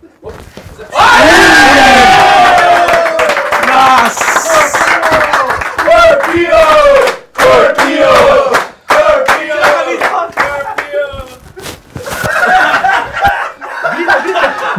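Several men shout and cheer loudly.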